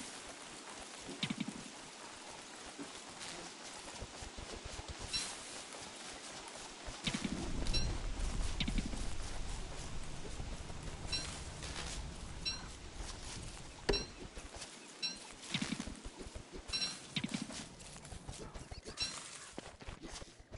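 Footsteps patter steadily across the ground.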